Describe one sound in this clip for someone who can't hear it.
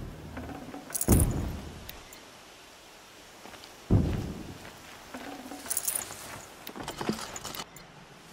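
A short bright chime sounds as items are picked up.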